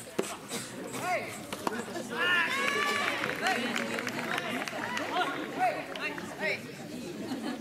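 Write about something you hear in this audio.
Young players shout out from a distance.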